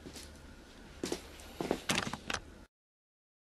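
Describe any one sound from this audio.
Footsteps thump across a hard floor close by.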